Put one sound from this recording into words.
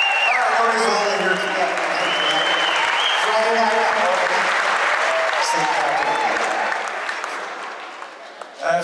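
A crowd cheers and whistles loudly in a large space.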